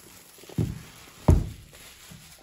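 A cardboard box thumps down onto a wooden table.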